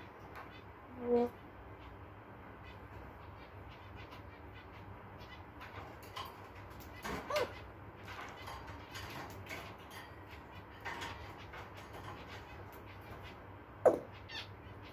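A parrot makes short squawking calls.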